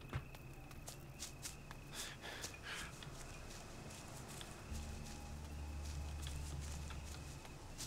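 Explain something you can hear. Footsteps crunch steadily on a dirt path.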